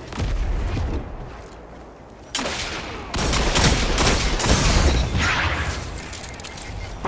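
Guns fire in loud bursts of shots.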